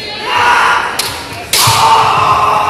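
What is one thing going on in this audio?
Bamboo swords strike sharply against armour.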